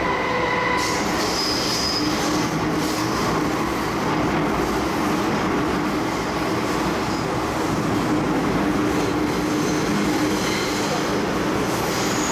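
A subway train rumbles and hums steadily along the tracks.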